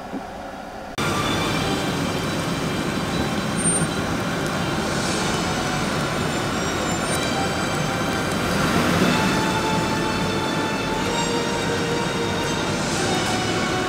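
A van engine idles steadily outdoors.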